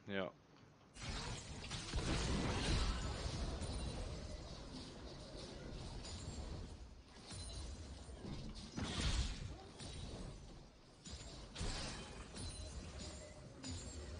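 Magic spells crackle and blast in a fast game battle.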